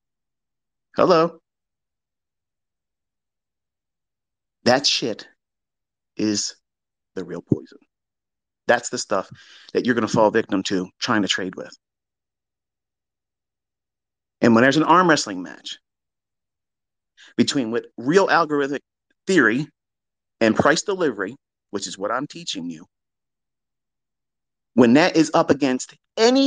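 A man speaks in short bursts with pauses, close to a microphone.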